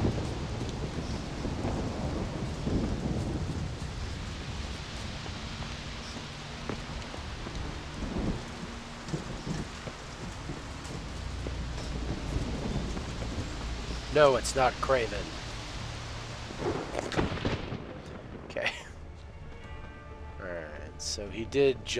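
Footsteps crunch over grass and stone at a steady walking pace.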